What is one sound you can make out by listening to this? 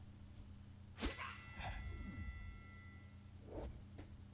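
A bright game chime rings out and slowly fades.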